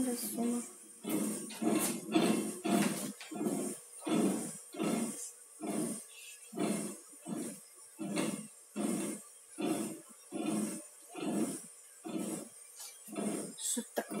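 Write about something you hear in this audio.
A hand wheel turns with a steady, repeated clicking.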